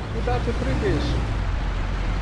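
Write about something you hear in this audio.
A young man talks briefly and casually into a close microphone.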